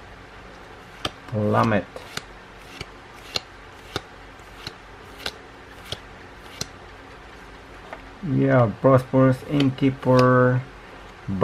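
Playing cards slide and snap against each other.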